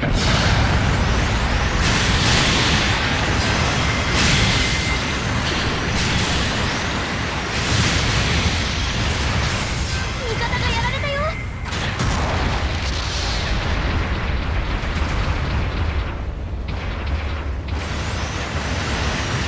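Mechanical thrusters roar steadily.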